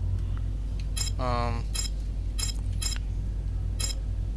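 Short electronic menu blips sound several times.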